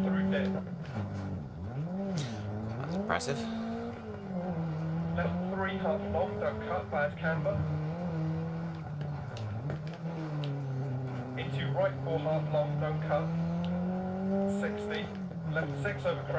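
A rally car engine revs up and down steadily.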